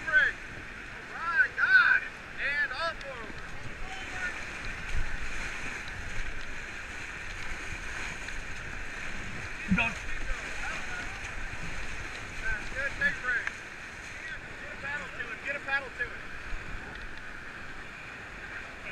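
Whitewater rapids roar and rush steadily.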